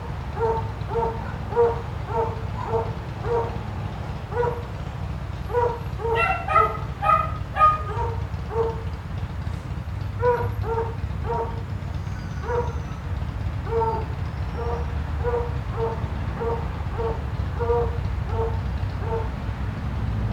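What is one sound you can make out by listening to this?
A small dog barks repeatedly and steadily nearby.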